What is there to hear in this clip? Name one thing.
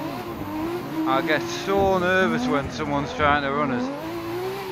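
Tyres squeal in a long skid.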